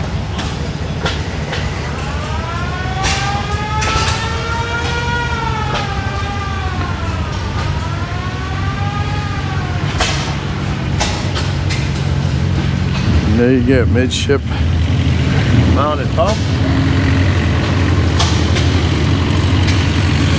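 A large truck engine idles steadily nearby.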